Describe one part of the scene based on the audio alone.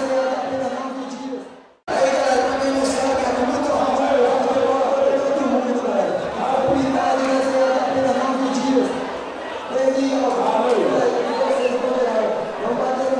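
A large crowd sings and chants loudly in an open stadium.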